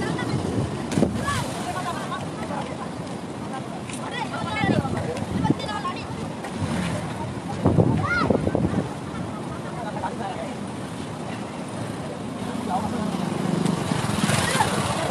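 A person jumps and splashes into water.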